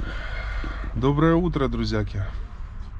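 A man talks cheerfully into a nearby microphone.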